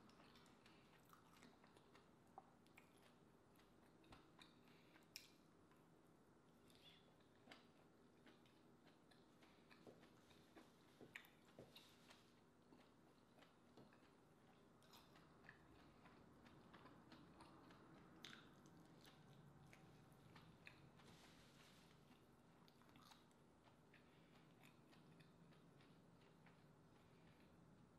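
A spoon scrapes and clicks against mussel shells on a plate close to the microphone.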